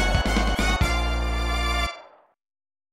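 A short, bright electronic game tune plays loudly.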